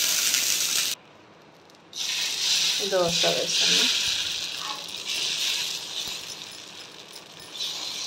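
A ladle scrapes across a griddle as batter is spread.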